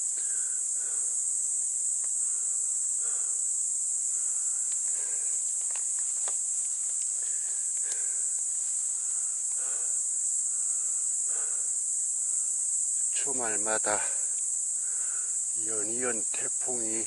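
Footsteps crunch on dry leaves and loose stones.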